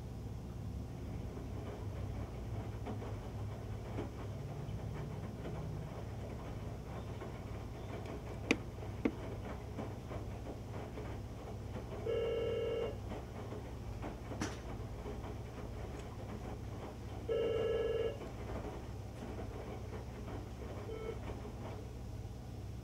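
Laundry tumbles and swishes inside a washing machine drum.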